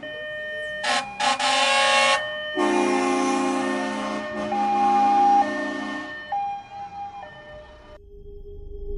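A heavy truck engine rumbles as it drives past.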